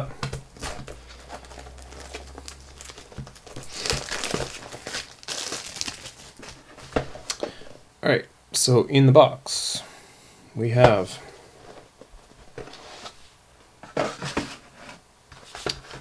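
Hands handle and tap a cardboard box.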